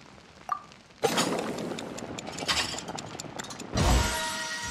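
A pot of food bubbles and sizzles over a crackling fire.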